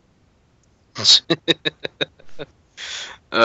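A young man laughs loudly in short bursts.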